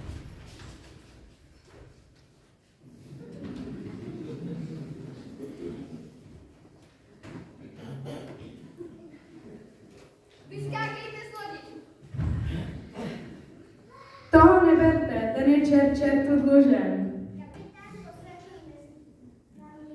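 Children speak lines on a stage in a large hall, heard from the audience.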